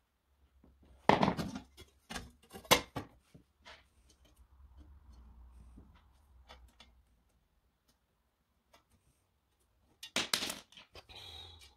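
A metal door panel knocks and clatters as it is handled.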